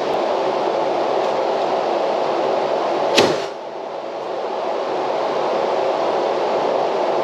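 An electric fan whirs steadily nearby.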